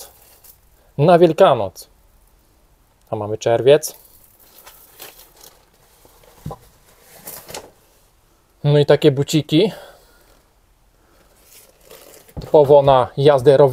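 Clothes and plastic bags rustle as hands rummage through them.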